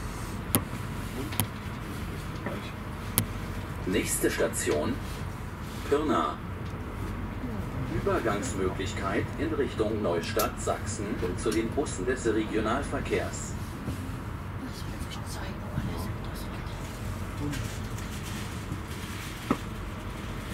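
Wheels clack over rail joints.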